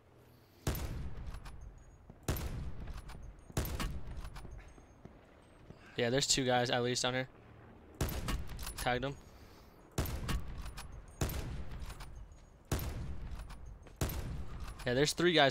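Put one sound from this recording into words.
Sniper rifle shots boom one at a time, each ringing out and fading.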